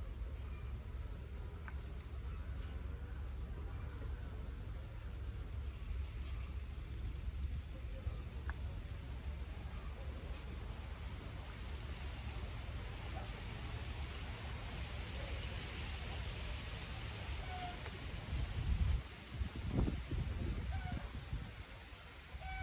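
Wind buffets outdoors with low rumbling gusts.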